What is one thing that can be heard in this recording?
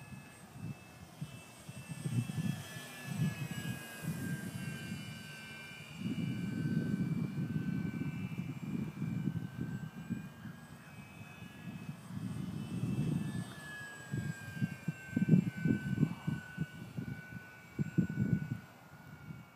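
A small propeller plane drones high overhead, its engine pitch slowly shifting.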